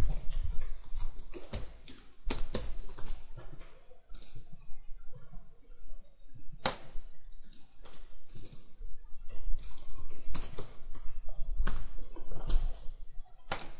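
Keys tap on a keyboard.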